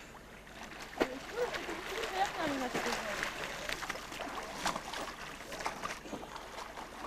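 Water splashes as swimmers kick nearby.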